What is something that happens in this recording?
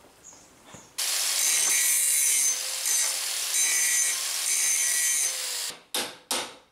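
An angle grinder whines loudly as it grinds metal.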